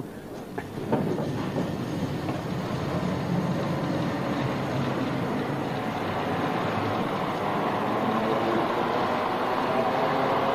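A cable car cabin rumbles steadily along its cable.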